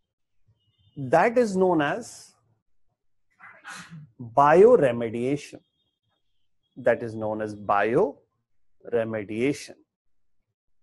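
A middle-aged man speaks calmly, pausing between phrases.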